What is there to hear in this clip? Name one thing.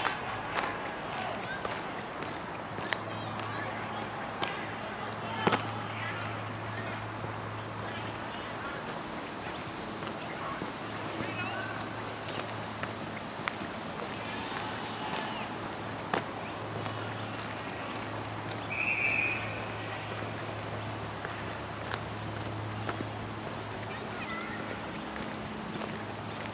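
Footsteps crunch steadily on a gravel path outdoors.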